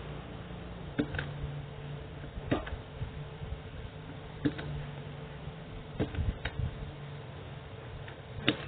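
A spot welder snaps sharply against a metal strip, again and again at short intervals.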